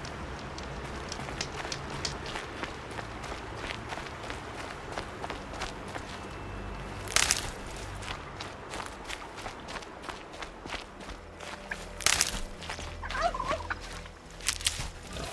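Footsteps rustle quickly through dry grass and brush.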